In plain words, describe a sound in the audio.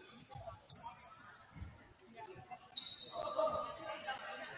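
A referee's whistle blows sharply in a large echoing gym.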